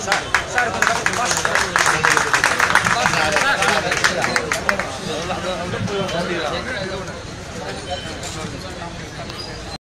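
A crowd of men shouts and talks loudly up close.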